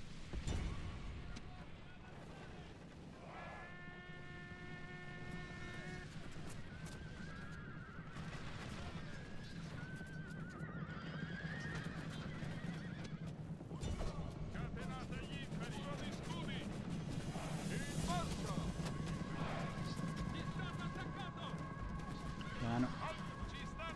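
A battle din of many soldiers rumbles steadily.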